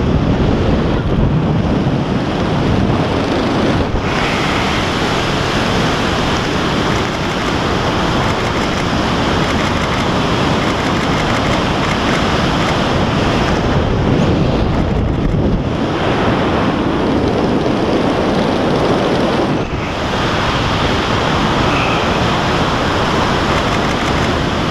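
Loud wind roars and buffets past a microphone high in the air.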